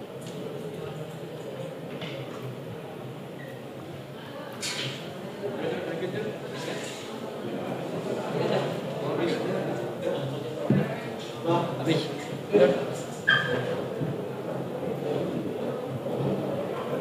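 Many people murmur and talk at once in an echoing room.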